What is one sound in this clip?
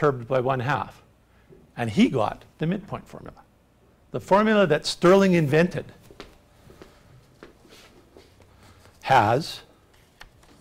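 An older man speaks calmly, as if lecturing.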